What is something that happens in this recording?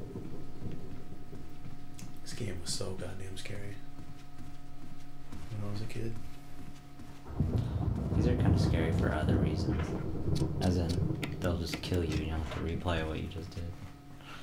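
Footsteps thud along a wooden floor.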